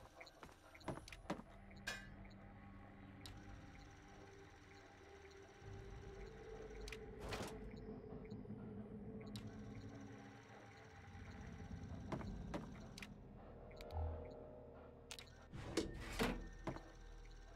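Items are picked up with short clicks and clatters.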